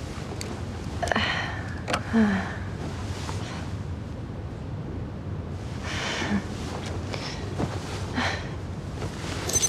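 A young woman groans and sighs sleepily close by.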